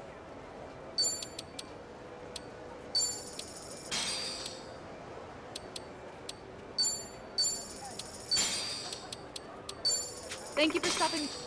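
Short electronic chimes beep in quick bursts.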